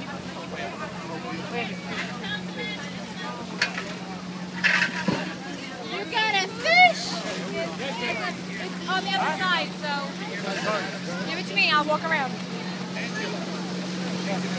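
A crowd of adults chatters outdoors close by.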